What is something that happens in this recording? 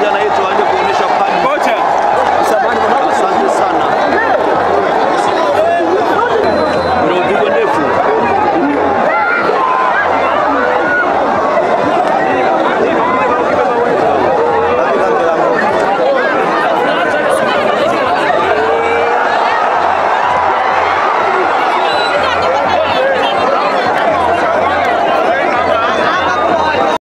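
A large outdoor crowd chatters and cheers steadily.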